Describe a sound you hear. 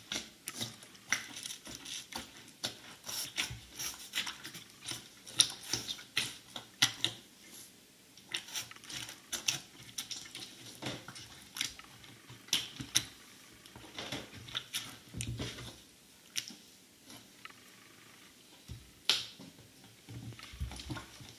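Sneakers squelch and slosh in liquid, heard muffled and close.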